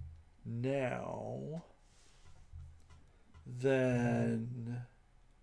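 A man talks calmly and closely into a microphone, in short drawn-out phrases.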